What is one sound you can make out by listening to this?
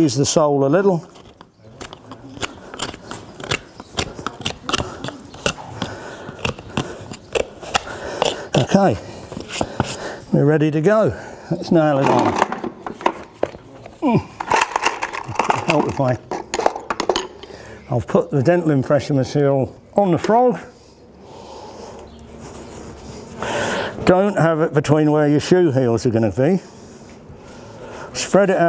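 A middle-aged man talks calmly up close.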